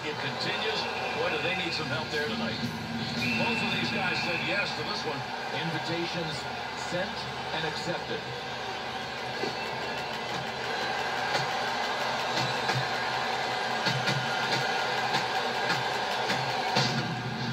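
Arena crowd noise from an ice hockey video game plays through television speakers.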